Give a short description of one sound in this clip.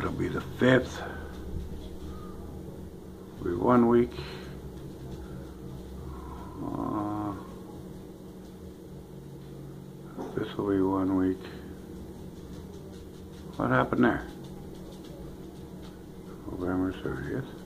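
An elderly man speaks slowly in short bursts close to the microphone, with long pauses.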